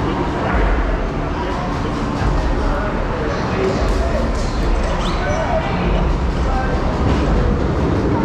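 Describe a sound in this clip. A harness buckle clicks and rattles.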